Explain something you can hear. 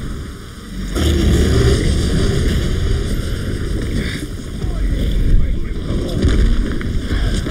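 A large beast stomps heavily across stone.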